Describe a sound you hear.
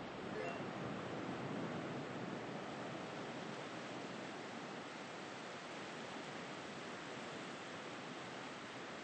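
Waves wash steadily onto a sandy shore.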